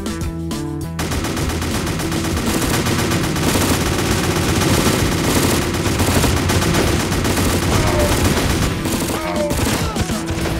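Battle sounds of clashing and gunfire crackle busily.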